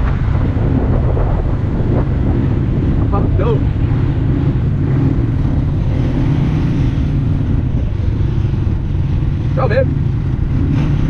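An off-road vehicle's engine rumbles steadily close by.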